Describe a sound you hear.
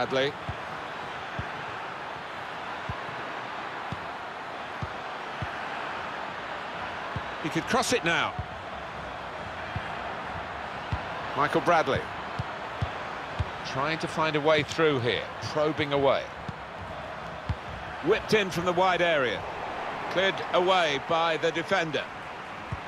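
A football is kicked.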